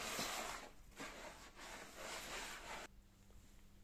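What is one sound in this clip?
A gloved hand rubs and stirs a dry powder.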